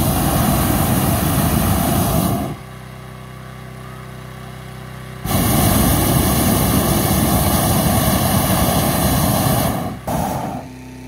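An inflator fan engine roars loudly nearby.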